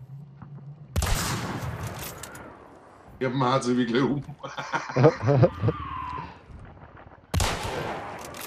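A heavy gunshot booms and echoes.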